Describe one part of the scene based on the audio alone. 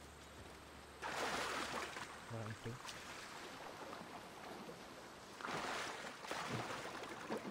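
Water splashes as someone wades through the shallows.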